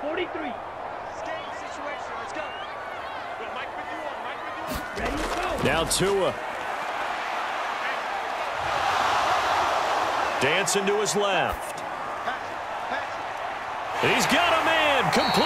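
A stadium crowd roars, swelling louder midway.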